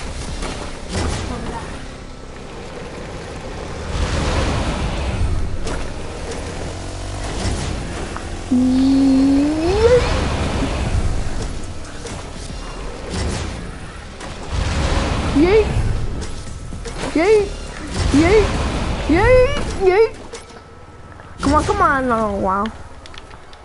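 A small vehicle's engine revs and whines as it drives over bumpy ground.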